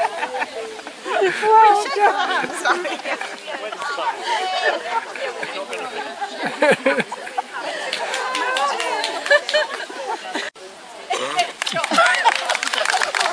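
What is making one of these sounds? An elderly woman laughs loudly up close.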